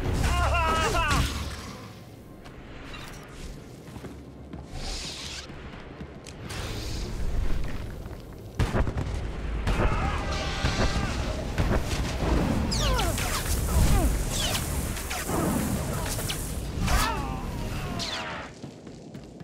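Energy blasts zap and crackle in a fight.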